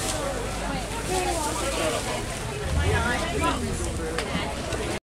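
Women talk and chatter close by amid a busy crowd.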